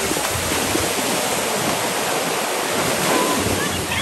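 A person splashes into the sea after a jump.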